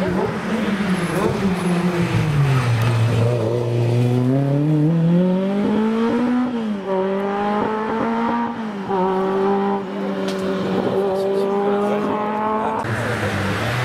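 A rally car engine roars and revs hard as it speeds past and away up the road.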